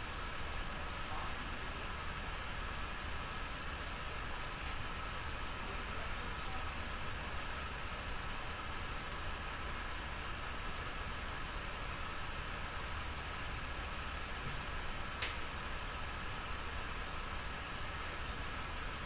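Wind blows steadily across an open hillside.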